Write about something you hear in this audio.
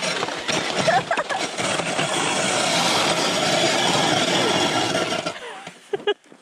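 A sled's runners scrape and hiss over packed snow.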